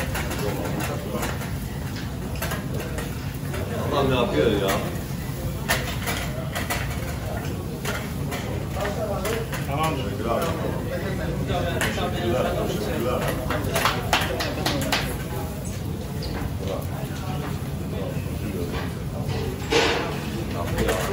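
Meat skewers sizzle steadily on a hot grill.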